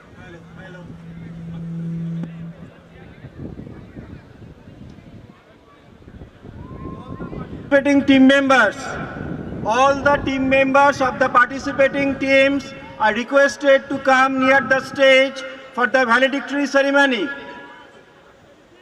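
A man speaks into a microphone, heard through loudspeakers outdoors.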